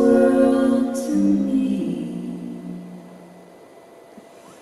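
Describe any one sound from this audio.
Women sing a held harmony through loudspeakers and the final note fades.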